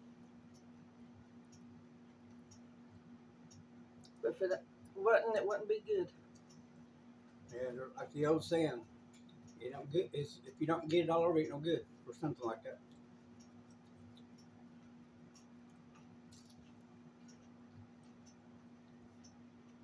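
A fork clinks and scrapes on a plate.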